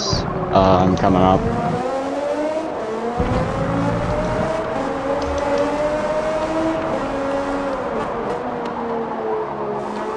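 Tyres screech on a tight corner.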